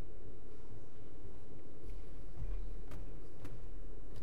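A man's footsteps sound on a wooden floor.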